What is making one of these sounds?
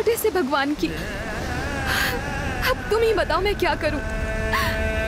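A young woman speaks urgently and emotionally, close by.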